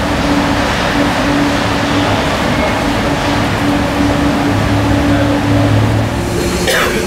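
A crowd of adults murmurs and chatters in a waiting area.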